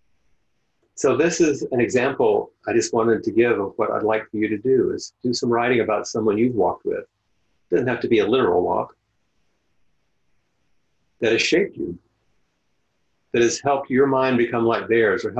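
A middle-aged man speaks calmly into a microphone over an online call.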